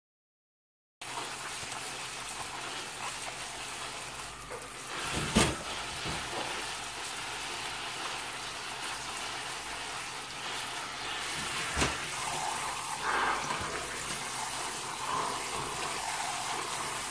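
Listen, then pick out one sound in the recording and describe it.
Tap water splashes steadily into a sink.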